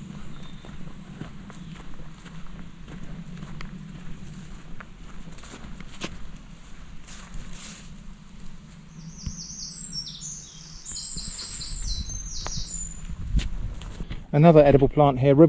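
Footsteps brush through long grass along a dirt path.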